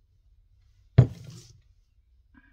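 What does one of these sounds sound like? A plastic bottle thumps down on a table.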